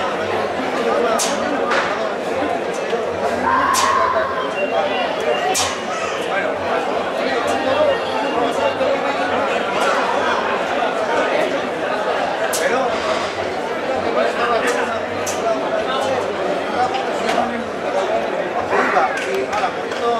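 A crowd of men and women chatters and shouts loudly outdoors.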